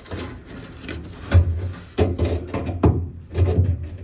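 A metal plate scrapes as it is lifted away.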